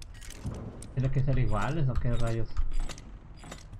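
A lock mechanism clunks and whirs open.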